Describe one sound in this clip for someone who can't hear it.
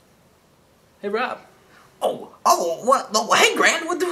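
A young man speaks loudly and with animation close by.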